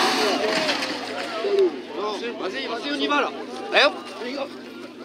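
A rally car crashes and tumbles onto grass.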